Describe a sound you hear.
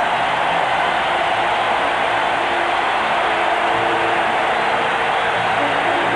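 A large crowd cheers and roars loudly in a big stadium.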